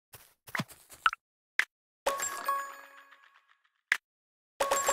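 Soft game menu clicks tap now and then.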